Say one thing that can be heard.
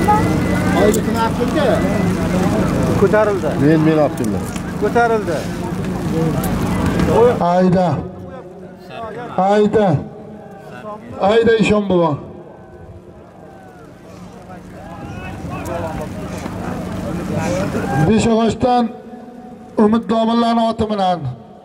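A crowd of men shouts and calls out in the distance.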